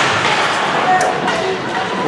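A hockey stick clacks against the puck.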